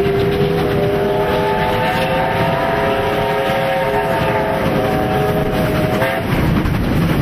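A steam locomotive whistle blows loudly.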